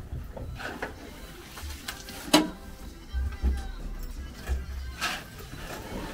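A pitchfork rustles and scrapes through straw.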